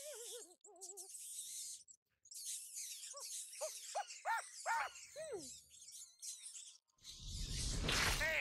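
Rats squeak shrilly in a swarm.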